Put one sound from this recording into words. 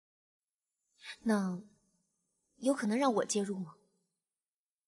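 A young woman speaks softly and questioningly, close by.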